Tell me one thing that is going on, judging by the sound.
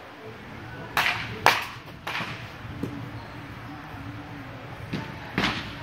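A bat sharply cracks against a baseball several times.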